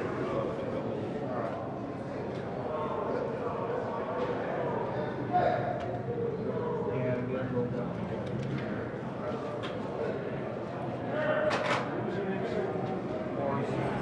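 Several men talk quietly at a distance in a large echoing hall.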